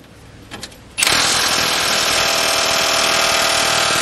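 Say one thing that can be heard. An impact wrench rattles loudly and steadily.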